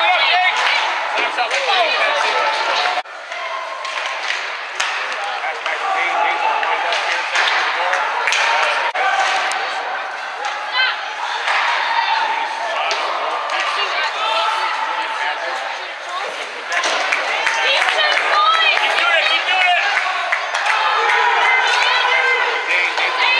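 A crowd of spectators chatters and shouts close by in a large echoing rink.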